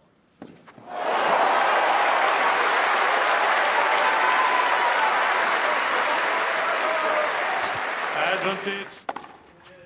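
A large crowd applauds and cheers loudly outdoors.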